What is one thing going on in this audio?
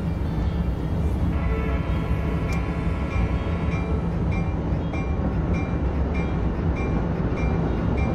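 A train rumbles along the tracks with a steady low roar.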